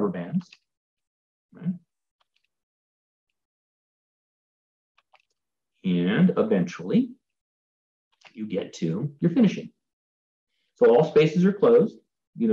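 A man talks calmly through a microphone in an online call, with pauses.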